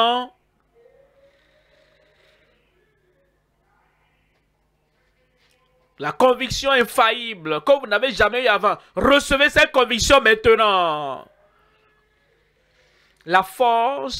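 An elderly man preaches with animation through a microphone.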